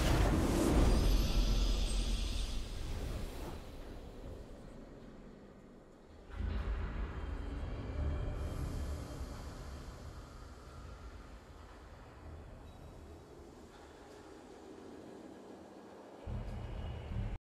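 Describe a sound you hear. A triumphant game fanfare swells and slowly fades.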